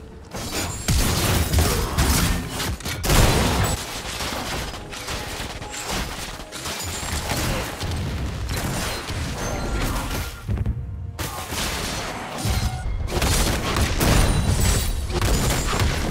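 Spell effects whoosh and crash in a fast game fight.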